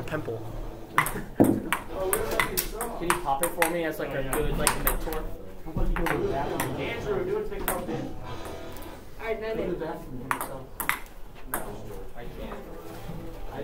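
Several teenage boys talk and shout nearby.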